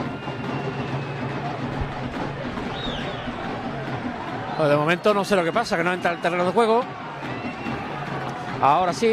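A crowd of spectators murmurs in the background outdoors.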